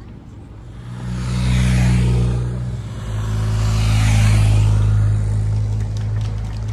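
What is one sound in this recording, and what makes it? Cars rush past on a wide road.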